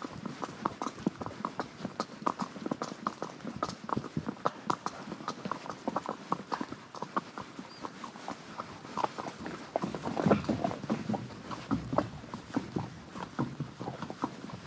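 Horse hooves clop steadily on a gravel track.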